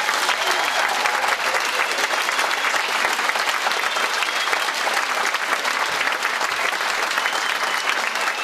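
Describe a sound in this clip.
A large audience applauds loudly and steadily.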